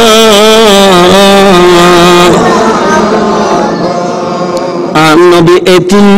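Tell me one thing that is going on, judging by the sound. A man chants in a long, wavering sung voice through a microphone, with echo.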